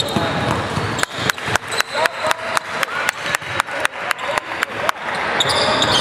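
A basketball bounces steadily on the floor.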